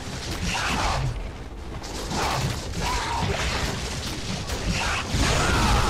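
Blades whoosh through the air in quick slashes.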